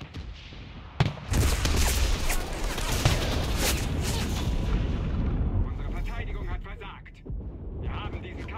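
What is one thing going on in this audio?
A rifle fires repeated loud shots.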